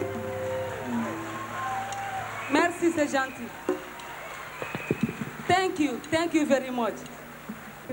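A band plays live music through loudspeakers.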